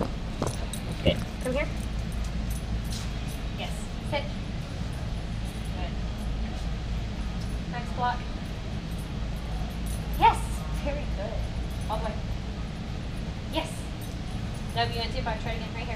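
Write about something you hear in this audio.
A young woman speaks softly and calmly nearby.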